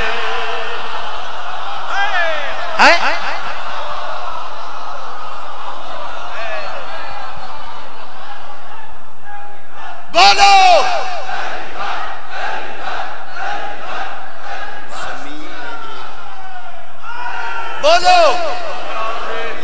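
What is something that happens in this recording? A crowd of men chants loudly.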